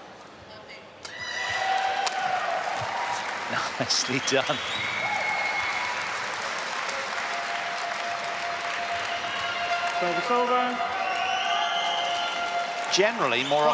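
A large crowd cheers and claps in a big echoing hall.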